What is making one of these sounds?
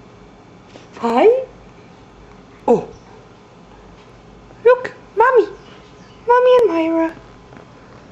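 A young woman talks close by in a playful, sing-song voice.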